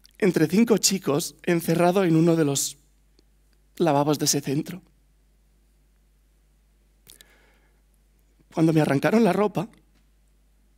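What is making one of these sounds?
A young man speaks slowly with long pauses through a headset microphone.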